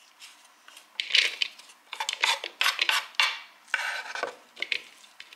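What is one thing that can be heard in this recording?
A wooden spatula scrapes chopped food off a wooden board into a wooden bowl.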